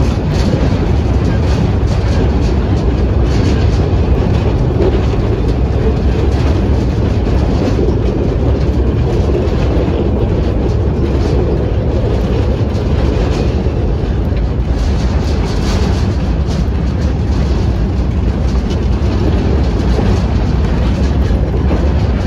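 A small train rumbles and rattles steadily along the track.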